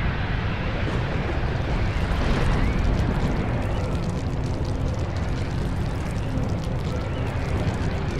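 A beam of magical energy roars with a deep, steady rumble.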